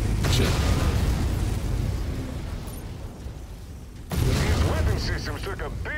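Explosions boom and rumble nearby.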